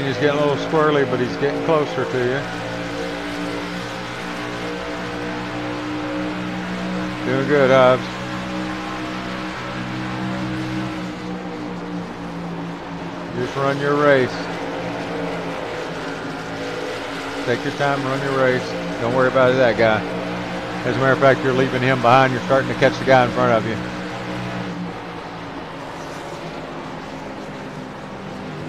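A racing engine drones steadily at high speed.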